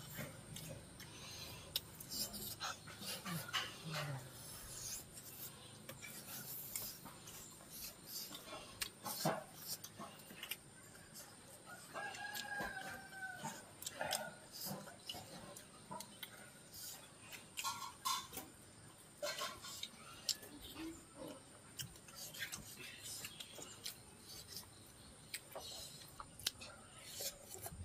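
Hands pull apart cooked meat with soft tearing and squelching sounds.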